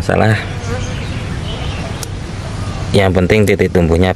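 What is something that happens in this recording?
Scissors snip a twig.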